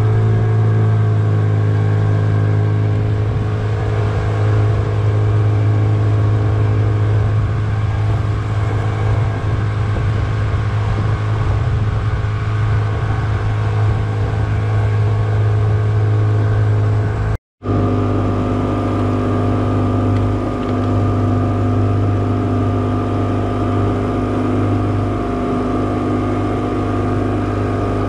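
An outboard motor drones steadily close by.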